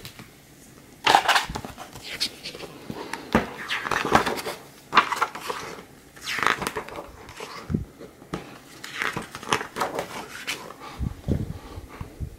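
Book pages rustle and flap as they are turned by hand.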